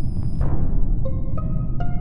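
A game alert blares.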